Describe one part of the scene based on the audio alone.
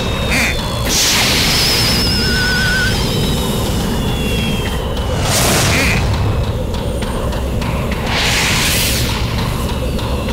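A loud rushing whoosh sweeps past and fades.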